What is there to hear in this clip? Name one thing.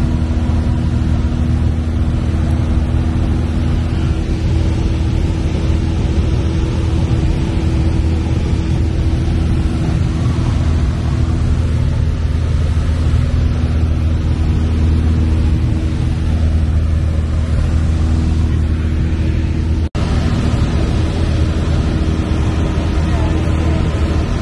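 A small propeller plane's engine drones steadily and loudly from inside the cabin.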